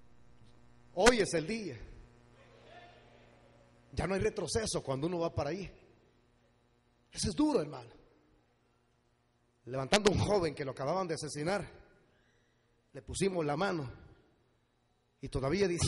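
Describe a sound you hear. A man preaches passionately into a microphone in bursts, heard through loudspeakers.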